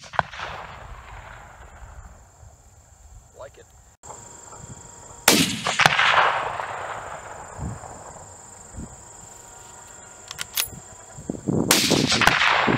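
A rifle fires sharp shots outdoors, each echoing across open ground.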